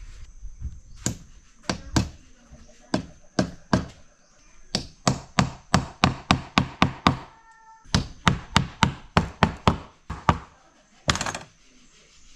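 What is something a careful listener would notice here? A wooden mallet taps pegs into wood with sharp, quick knocks.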